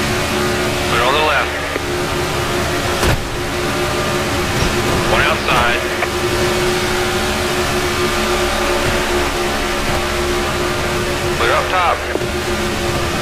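Other race cars whoosh past close by.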